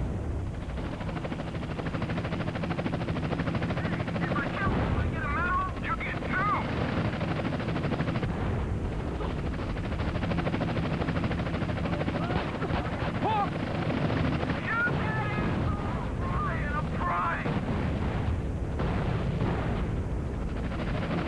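Explosions boom and roar with crackling flames.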